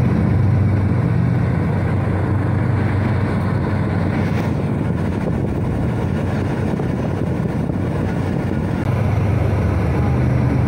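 A passenger train rumbles past close by, its wheels clattering on the rails.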